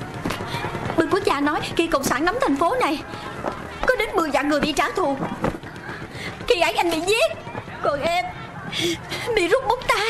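A woman speaks with feeling nearby.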